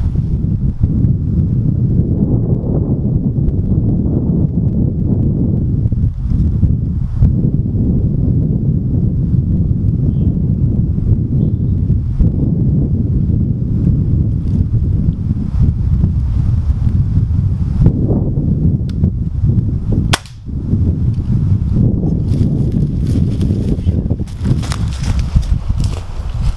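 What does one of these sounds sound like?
Wind rumbles loudly outdoors.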